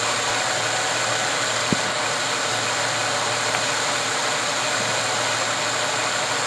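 A car engine idles with a steady hiss.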